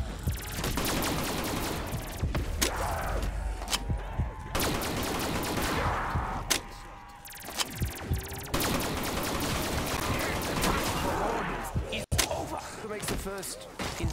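Zombies growl and snarl nearby.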